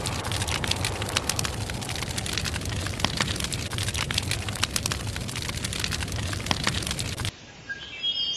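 A gas flame roars and crackles from a leaking pipe.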